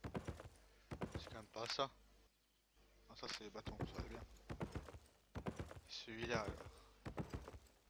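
A young man talks briefly into a microphone.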